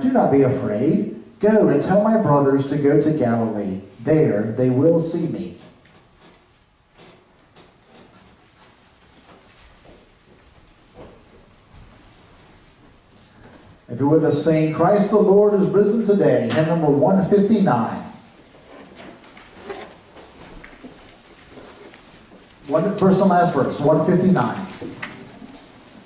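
A man speaks with feeling through a microphone in an echoing hall.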